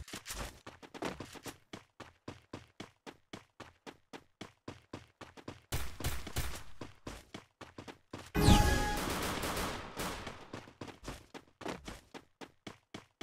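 Quick footsteps thud on grass as a game character runs.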